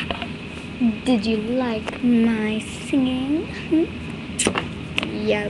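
A child speaks in a high, playful voice close by.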